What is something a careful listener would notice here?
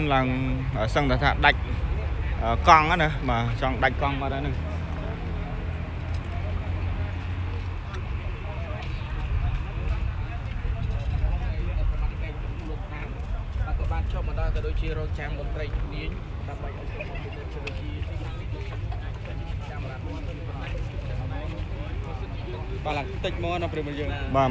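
A crowd of men and women talk excitedly nearby outdoors.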